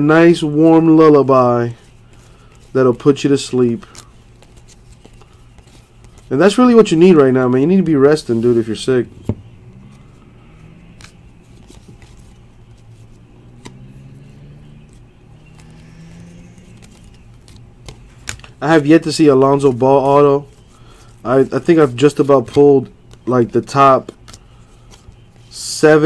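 Trading cards rustle and flick softly between fingers.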